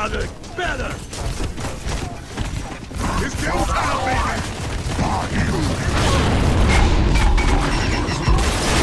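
Heavy footsteps thud as a creature runs.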